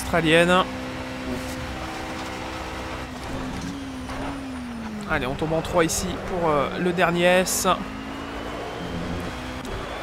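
A racing car engine hums steadily and revs up and down through gear changes.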